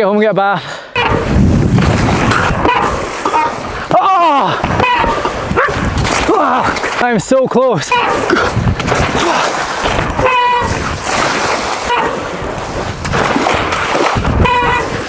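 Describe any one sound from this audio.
Water splashes loudly as a bicycle rides through a shallow pond.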